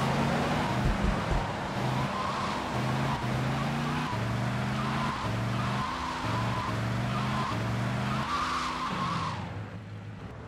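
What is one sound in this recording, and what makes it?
A car engine revs and roars as the car speeds along.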